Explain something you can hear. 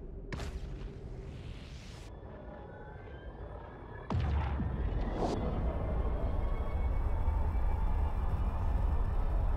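A spaceship's engines rumble deeply as it warps.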